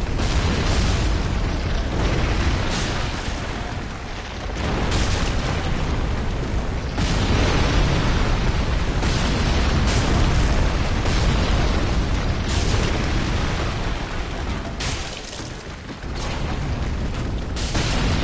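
A large beast roars and stomps heavily.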